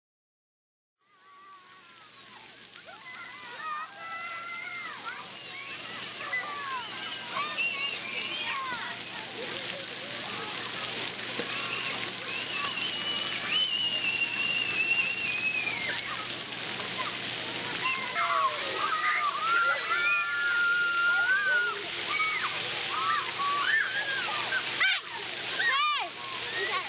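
Water sprays and splashes steadily.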